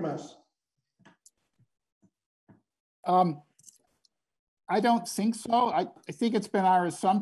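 A man speaks calmly through a microphone, with pauses.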